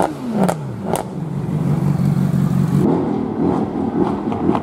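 A car engine idles with a deep rumble.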